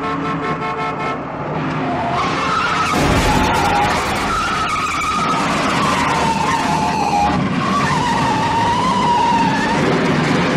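A car engine roars as a car speeds along a street.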